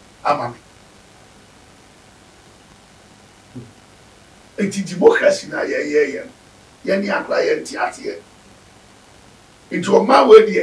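An elderly man speaks with animation close to a microphone, in short bursts with pauses.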